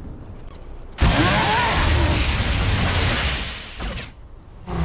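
A magical blast whooshes loudly.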